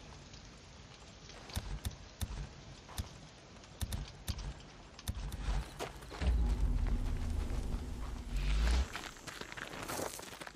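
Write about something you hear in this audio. Footsteps crunch on grass and dirt as a man runs.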